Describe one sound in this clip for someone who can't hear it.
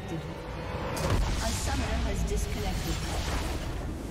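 A magical blast bursts with a rushing whoosh.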